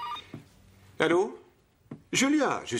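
A man speaks into a phone.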